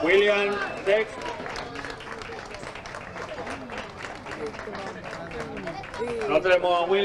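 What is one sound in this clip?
A small crowd claps and cheers outdoors.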